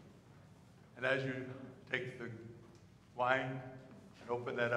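An elderly man chants slowly into a microphone, in a room that echoes.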